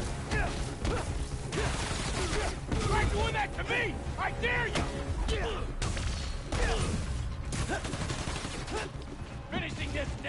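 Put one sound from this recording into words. Men grunt and shout as they fight.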